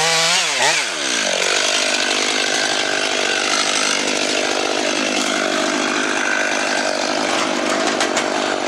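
A chainsaw engine drops to a steady idle.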